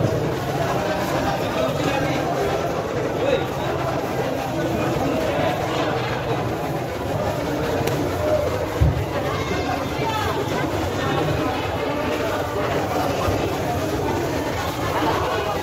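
A busy crowd murmurs and chatters in the background.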